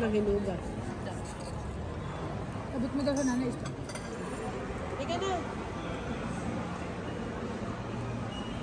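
A crowd of people chatters in the background.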